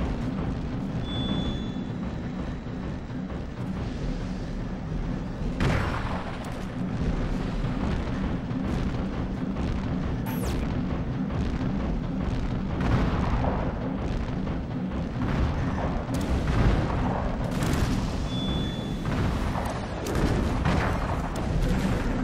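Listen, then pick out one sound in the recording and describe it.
Heavy mechanical footsteps thud steadily.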